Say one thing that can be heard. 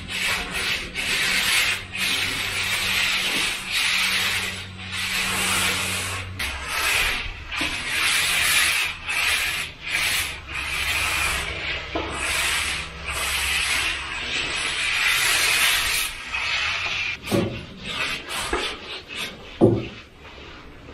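A hand sanding pad scrapes back and forth across a floor in quick strokes.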